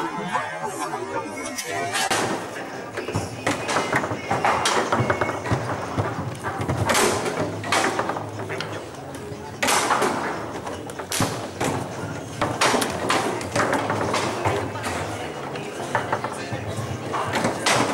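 A foosball clacks and bangs against plastic players and the table walls.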